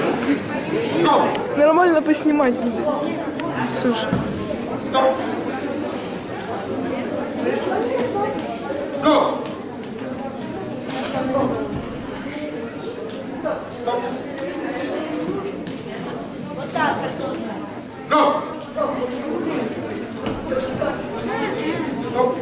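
A man calls out commands loudly.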